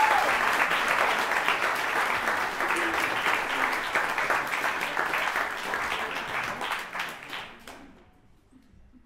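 An audience applauds and claps.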